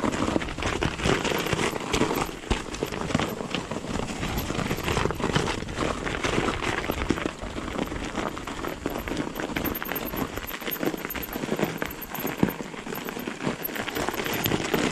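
Bicycle tyres crunch and rumble over packed snow.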